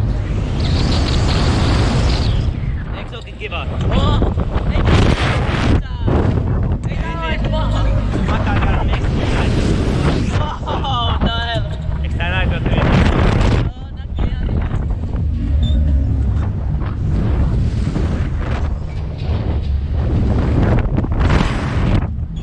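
Wind rushes loudly past close by.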